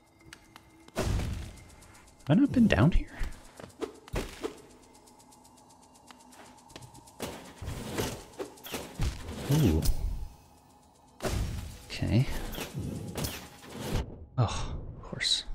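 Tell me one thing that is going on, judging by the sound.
Sharp blade slashes strike in quick bursts.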